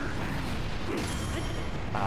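A loud magic blast bursts and crackles.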